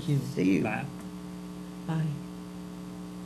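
A woman speaks briefly and cheerfully into a microphone, close by.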